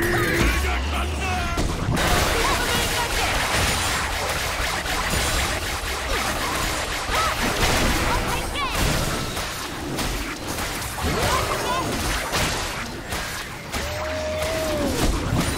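Magic blasts and clashing weapons crackle and whoosh in a fast game battle.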